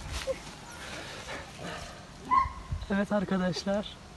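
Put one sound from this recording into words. A hand scrapes and digs through loose soil close by.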